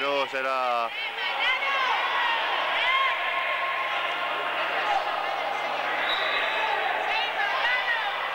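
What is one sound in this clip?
Sneakers squeak sharply on an indoor court floor.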